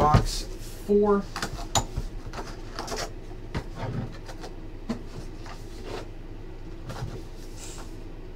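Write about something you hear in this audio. Card packs rustle and tap as hands handle them.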